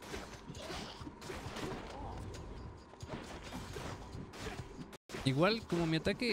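Sword strikes and magic blasts hit in a fast fight.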